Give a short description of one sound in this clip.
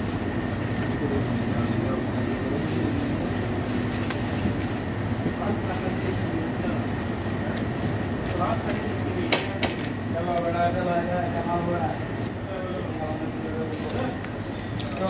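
Dry stalks rustle and crackle as hands sort through them.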